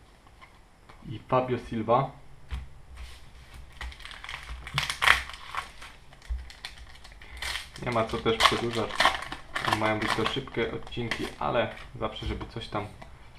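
Plastic wrappers crinkle and rustle close by.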